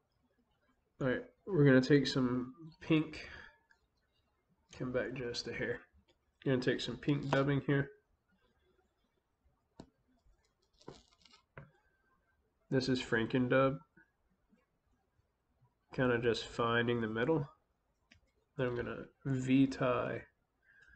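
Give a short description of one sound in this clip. A man talks calmly and close up, in short bursts with pauses.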